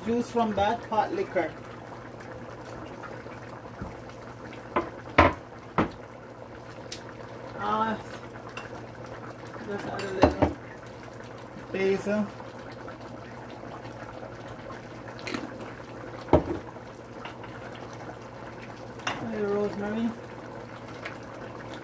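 Broth simmers gently in a pot.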